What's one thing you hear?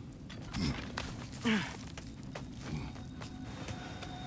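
Boots thud and scrape while climbing.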